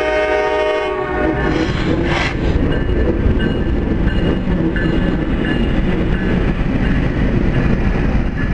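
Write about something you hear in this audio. A diesel locomotive rumbles and roars past close by.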